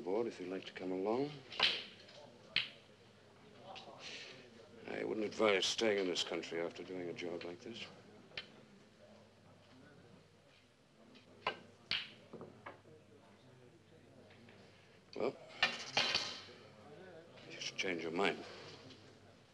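A man speaks in a low, calm voice close by.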